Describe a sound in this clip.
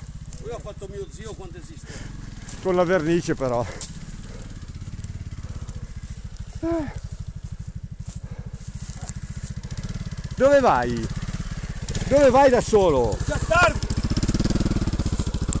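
A motorcycle engine idles with a steady low putter.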